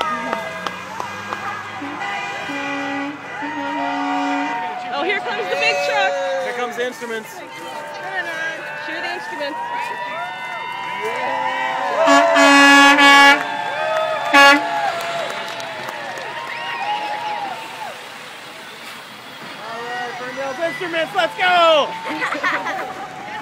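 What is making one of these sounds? A crowd of people cheers and shouts along a street.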